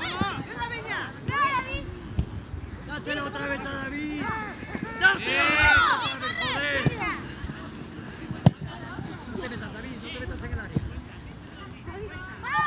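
Children shout and call out outdoors.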